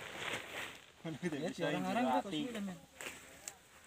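A young man speaks casually close by, outdoors.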